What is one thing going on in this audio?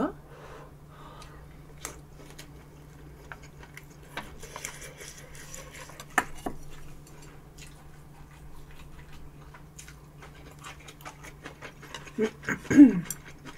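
A young woman chews food loudly and wetly close to a microphone.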